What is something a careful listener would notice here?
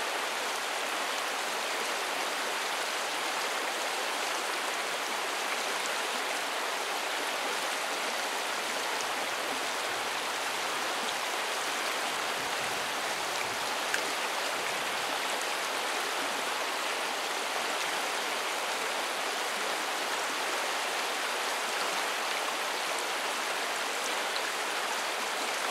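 A shallow river rushes and gurgles steadily over stones nearby.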